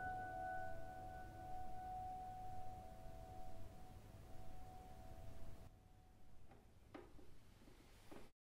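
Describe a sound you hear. A piano plays softly with sustained notes.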